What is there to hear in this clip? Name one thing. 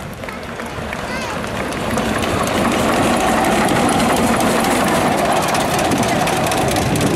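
Steel wheels rumble and clatter on the rails close by.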